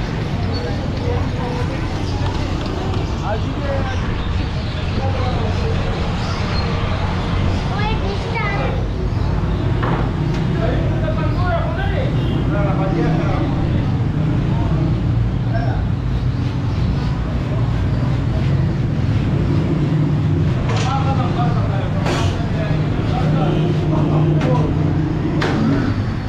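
Men talk and call out nearby in a noisy street.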